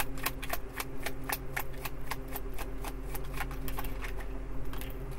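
Playing cards riffle and click as they are shuffled.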